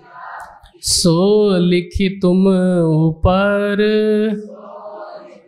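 A man sings loudly through a microphone, holding long notes.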